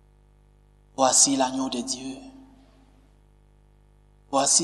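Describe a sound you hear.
A man chants aloud through a microphone.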